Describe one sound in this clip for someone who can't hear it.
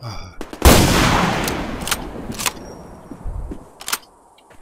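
A sniper rifle fires a loud shot that echoes away.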